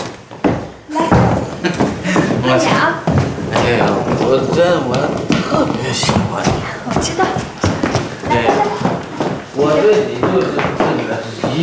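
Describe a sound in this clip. A man talks eagerly and coaxingly, close by.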